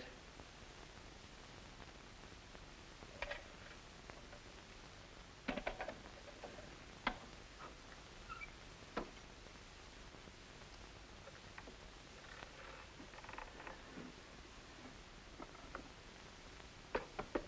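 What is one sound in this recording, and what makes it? A safe dial clicks and knocks as a man turns it.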